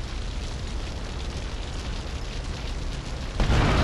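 Flames roar from a burning car.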